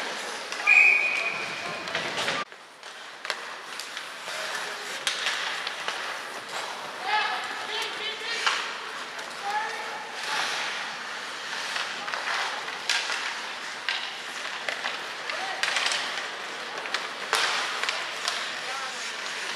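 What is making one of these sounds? Ice skates scrape and carve across an ice rink.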